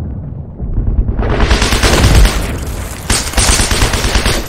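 A rifle fires several loud shots.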